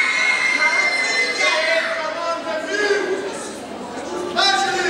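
A young woman speaks with animation into a microphone, heard through loudspeakers.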